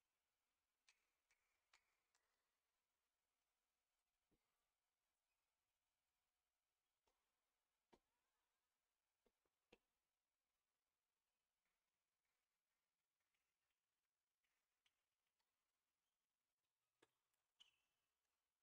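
A tennis ball bounces on a hard court, thudding now and then.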